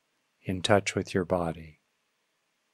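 An older man speaks softly and calmly into a close microphone.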